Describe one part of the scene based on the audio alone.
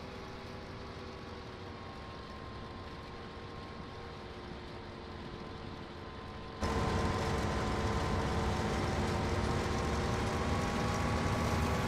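A combine harvester's engine hums steadily, muffled inside the cab and louder from outside.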